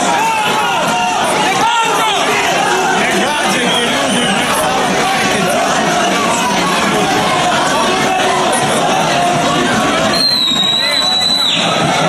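A large crowd of men shouts and jeers loudly outdoors.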